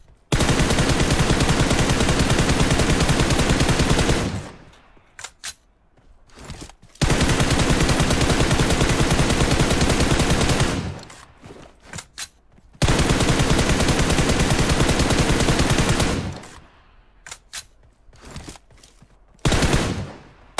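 A rifle fires long, rapid bursts of shots.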